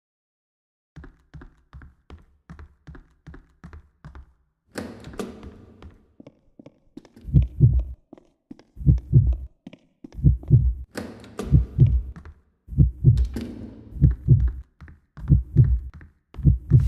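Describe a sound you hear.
Footsteps tap steadily on a hard floor, getting heavier and louder.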